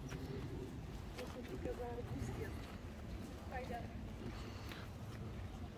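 Pigs grunt softly nearby.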